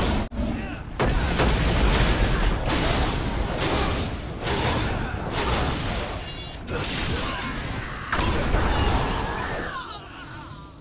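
Fiery spell blasts roar and crackle in rapid bursts.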